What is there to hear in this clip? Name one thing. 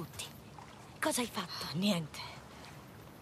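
A young woman answers briefly and tensely, close by.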